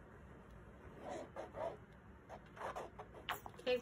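Paint squelches softly out of a squeeze bottle.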